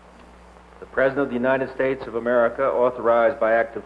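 A middle-aged man reads out through a microphone.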